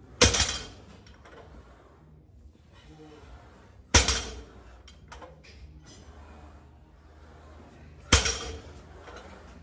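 A heavy loaded barbell slams onto the floor with a loud metallic crash that rings out.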